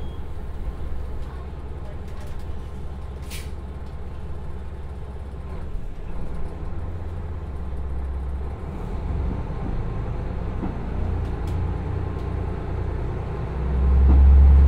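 A diesel train engine idles with a low rumble.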